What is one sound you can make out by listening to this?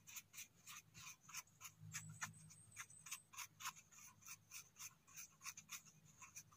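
A brush swishes quickly back and forth over a mushroom stem.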